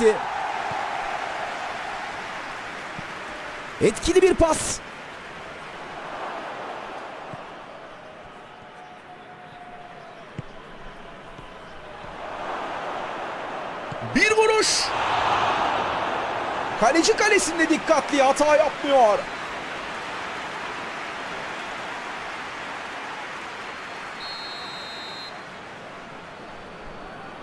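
A large crowd cheers and roars in a stadium, swelling and fading.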